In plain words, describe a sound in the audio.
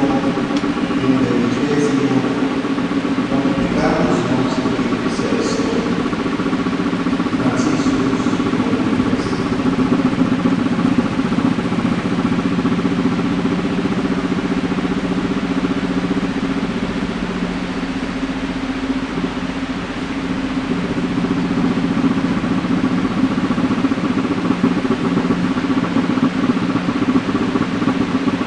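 A young man reads out through a microphone in a large echoing space.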